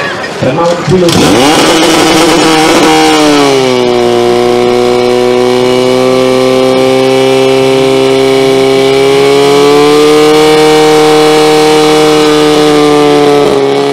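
A pump engine starts and roars loudly at a steady pitch.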